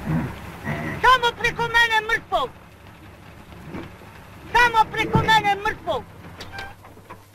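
An elderly man answers loudly and defiantly.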